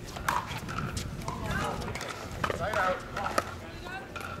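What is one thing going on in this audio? Paddles pop sharply against a plastic ball.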